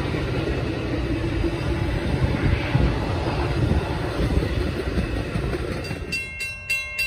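A passenger train rumbles past on the tracks.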